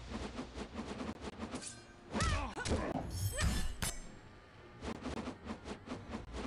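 Punches and kicks land with quick, sharp thuds.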